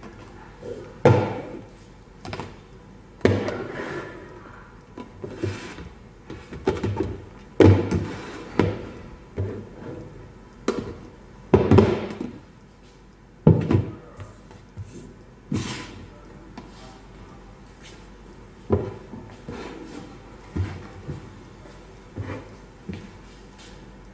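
Plastic food containers clatter and knock as they are set down on a wooden table.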